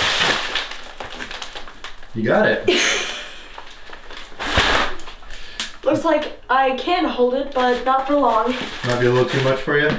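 Heavy paper bags thud as they are stacked.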